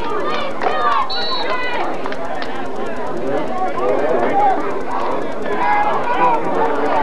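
A crowd of spectators talks and calls out outdoors nearby.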